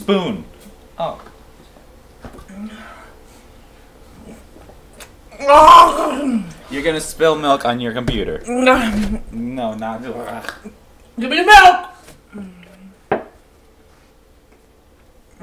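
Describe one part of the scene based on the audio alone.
A young woman gulps down a drink.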